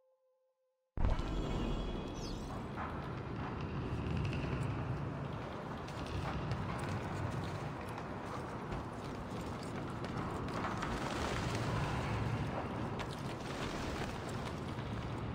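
Footsteps patter quickly on wooden floorboards.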